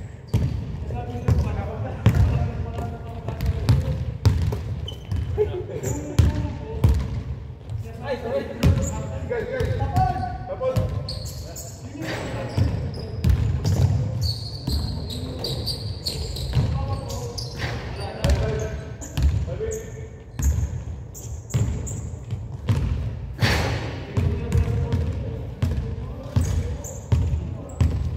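Sneakers squeak on the hardwood floor.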